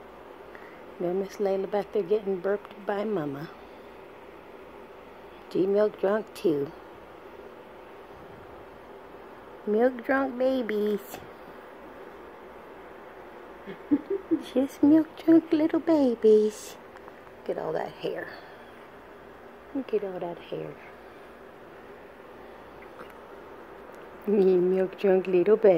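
A woman speaks softly and calmly close by, in short phrases with pauses.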